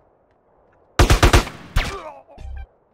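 Rapid gunshots fire.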